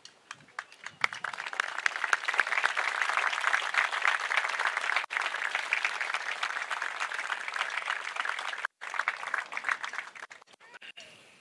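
A crowd claps and applauds outdoors.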